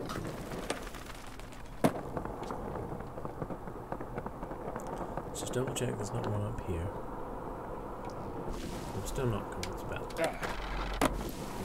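Skateboard wheels roll steadily over pavement.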